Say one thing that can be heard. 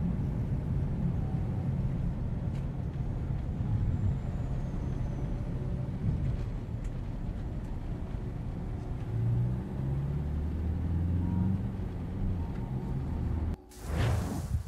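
A vehicle engine rumbles steadily from inside the cabin.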